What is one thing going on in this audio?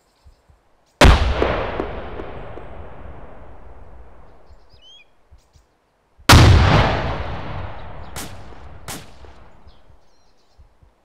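A rifle fires loud shots that echo and roll away through the forest.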